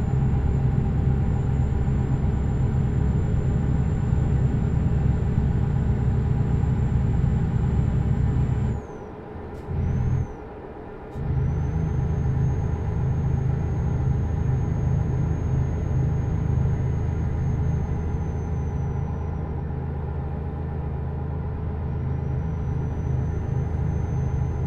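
A truck engine drones steadily at low pitch, dropping out briefly twice.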